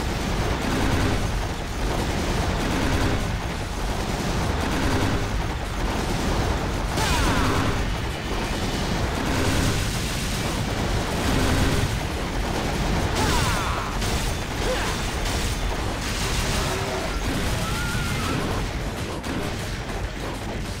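Magical blasts crackle and roar.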